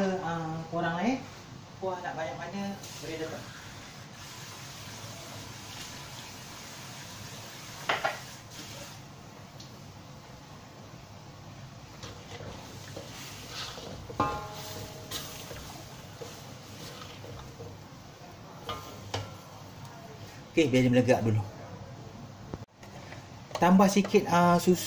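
Liquid bubbles and simmers in a metal pan.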